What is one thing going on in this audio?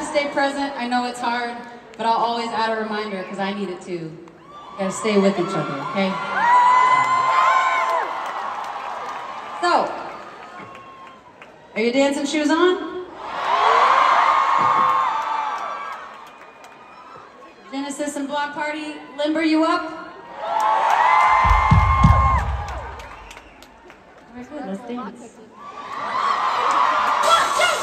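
A young woman sings and talks into a microphone through loud speakers in a large hall.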